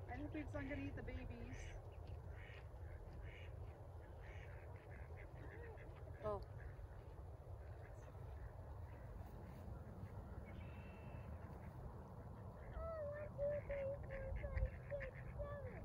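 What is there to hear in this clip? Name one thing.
Geese honk nearby on the water.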